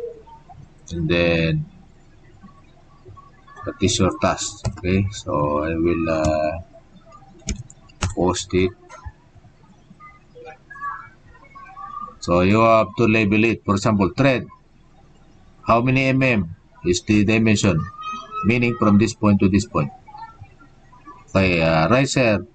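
A man speaks calmly through a webcam microphone, explaining in pauses.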